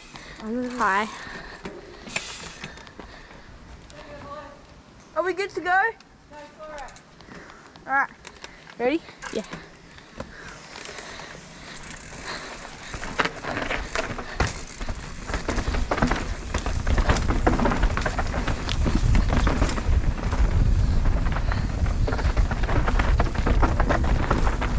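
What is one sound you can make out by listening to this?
Bicycle tyres rattle and crunch over a rough dirt trail, growing louder.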